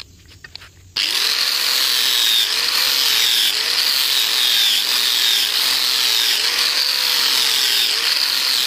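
An angle grinder whines loudly as it grinds a steel blade.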